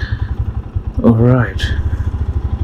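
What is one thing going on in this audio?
A motorcycle engine revs briefly with a rising whine.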